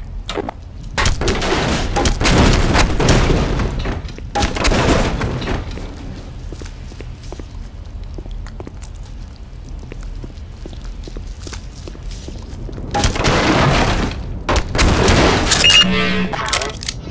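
Wood splinters and cracks as a crate breaks apart.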